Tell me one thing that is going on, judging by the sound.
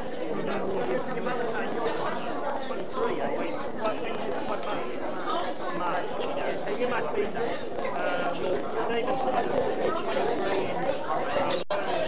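An elderly woman talks and laughs cheerfully nearby.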